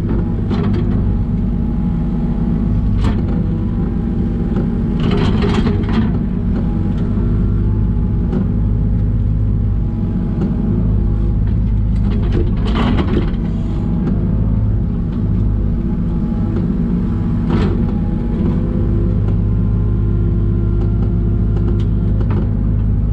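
A diesel engine drones steadily close by.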